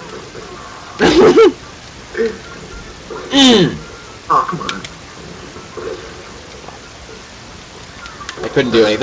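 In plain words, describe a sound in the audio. Cartoonish fighting game sound effects burst out in short bursts.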